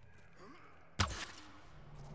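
An arrow is loosed from a bow with a sharp snap.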